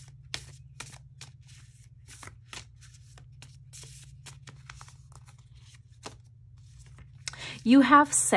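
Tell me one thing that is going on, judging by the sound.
Playing cards riffle and slap softly as a deck is shuffled by hand.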